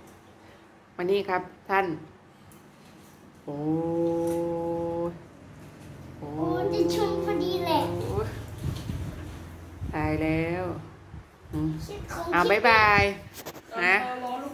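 A small child talks and squeals excitedly close by.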